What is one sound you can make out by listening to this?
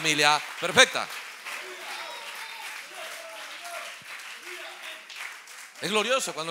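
A crowd claps and cheers in a room.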